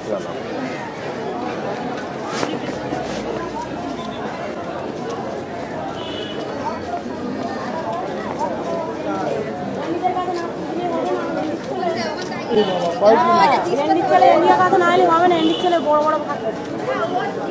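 A crowd chatters all around in a busy street.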